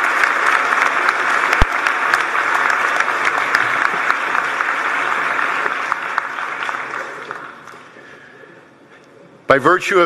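A large crowd applauds in a big echoing hall and slowly dies down.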